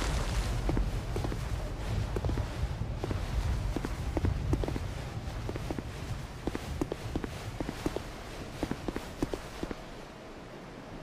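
Footsteps clank on stone.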